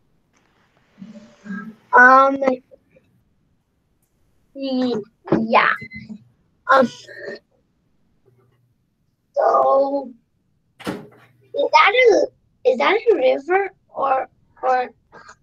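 A young person speaks casually over an online call.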